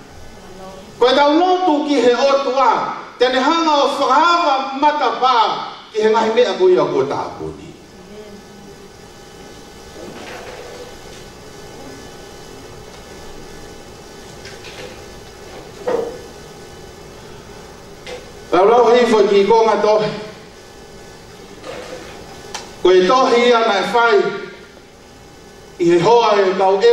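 A man speaks or sings with feeling into a microphone, heard through loudspeakers in an echoing room.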